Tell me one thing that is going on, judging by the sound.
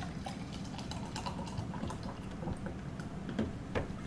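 Fizzy water pours into a glass.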